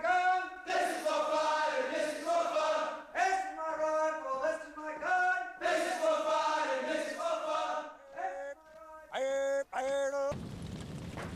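A group of men chant loudly in unison.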